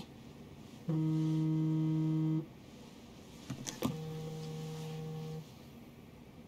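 A phone rings with an electronic tone.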